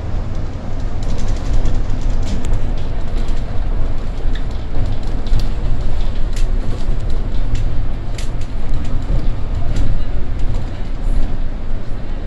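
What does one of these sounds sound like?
The bus body rattles and clicks while driving.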